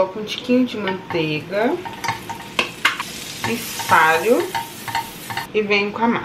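A utensil scrapes and taps in a frying pan.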